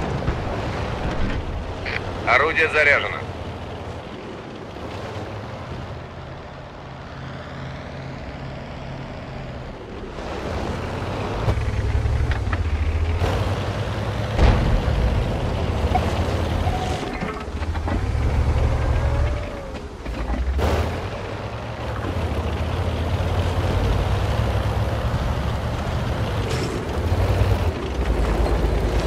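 A heavy tank engine rumbles and roars, growing louder as it drives.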